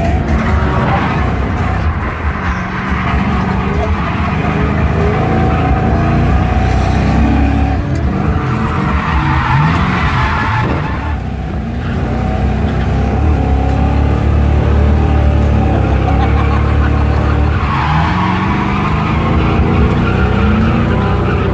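A car engine roars loudly, revving up and down.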